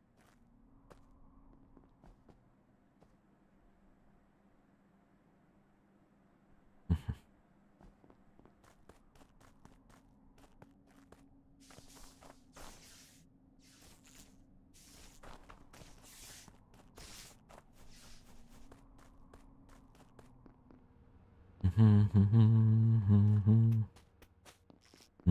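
Quick light footsteps patter steadily.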